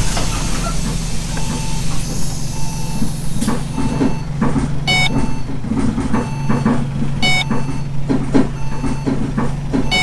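A ticket machine beeps repeatedly.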